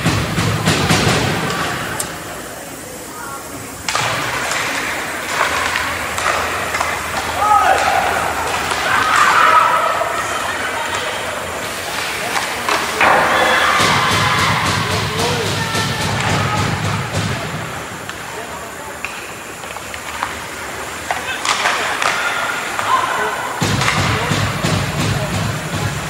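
Ice skates scrape and carve across an ice rink in a large echoing hall.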